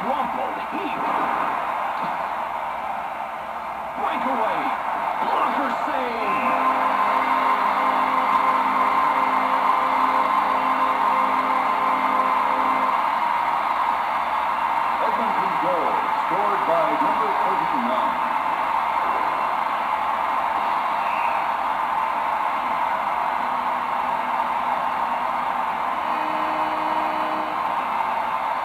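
A crowd roars steadily through a television speaker.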